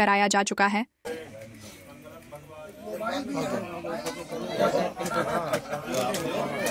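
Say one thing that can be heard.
A crowd of men and women chatters nearby.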